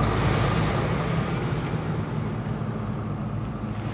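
A pickup truck drives past close by.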